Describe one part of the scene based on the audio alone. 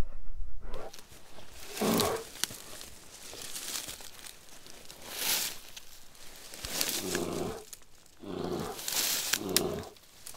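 Leafy branches rustle as a man pushes through them.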